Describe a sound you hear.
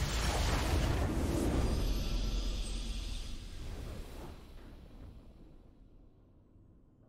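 A triumphant victory fanfare swells and fades away.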